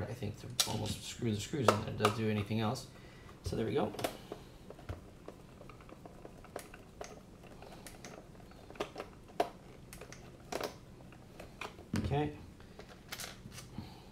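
Plastic parts click and knock as a handheld controller is handled.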